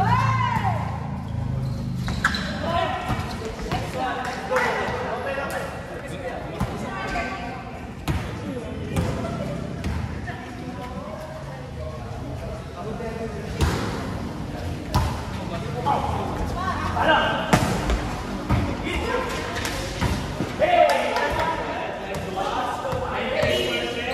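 Young players shout and call out to one another in a large echoing hall.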